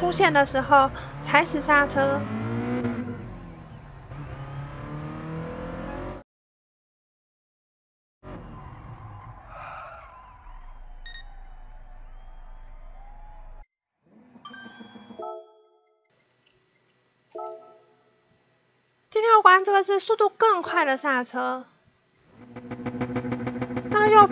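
A car engine revs and roars as the car speeds up.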